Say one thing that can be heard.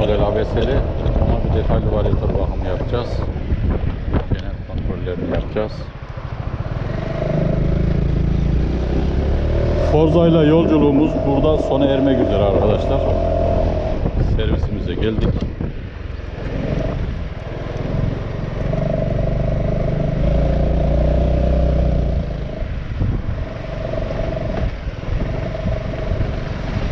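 Wind buffets the rider outdoors.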